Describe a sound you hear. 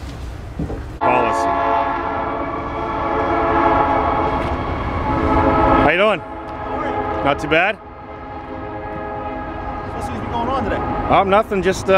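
A siren wails loudly nearby, rising and falling.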